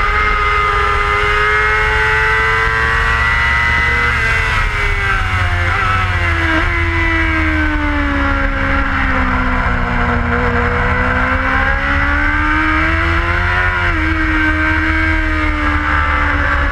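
A motorcycle engine roars close by, its pitch rising and falling as it shifts gears.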